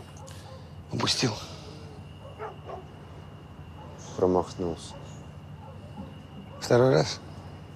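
An older man speaks tensely nearby.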